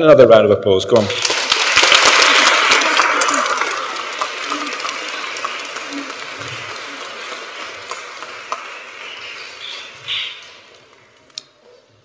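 A crowd applauds and slowly dies away.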